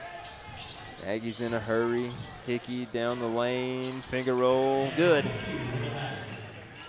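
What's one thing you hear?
A crowd cheers loudly after a basket.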